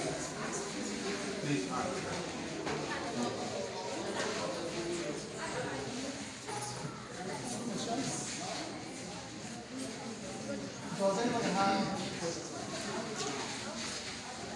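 A crowd of young people and adults chatters in an echoing room.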